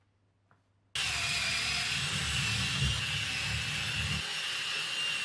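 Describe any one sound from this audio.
A cordless drill driver drives a screw into a wooden batten.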